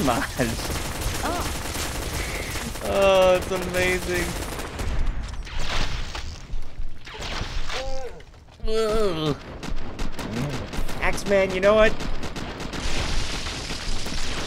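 An energy rifle fires in rapid zapping shots.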